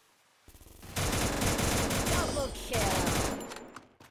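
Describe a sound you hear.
Rapid rifle fire rattles close by.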